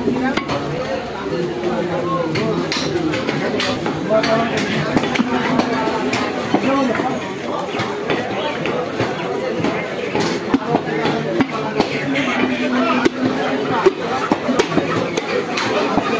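A cleaver chops down onto a wooden block with sharp thuds.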